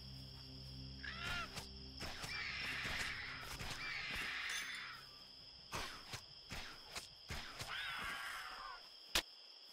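Bird-like creatures screech during a fight.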